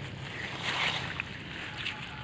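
Water drips and splashes from a lifted net.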